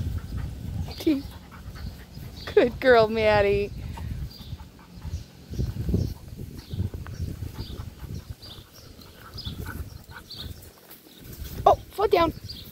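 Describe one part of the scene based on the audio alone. Dogs yelp and whine while playing nearby.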